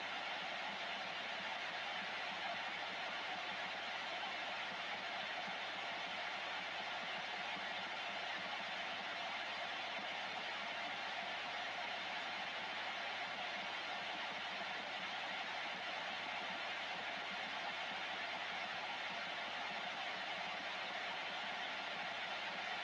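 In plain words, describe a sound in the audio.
Steady radio static hisses from a loudspeaker.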